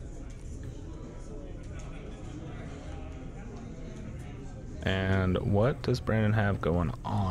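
Playing cards are shuffled and shifted on a table.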